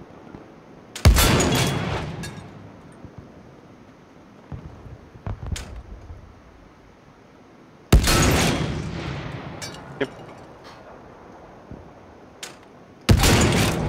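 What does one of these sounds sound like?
A rifle fires loud, booming shots that echo away.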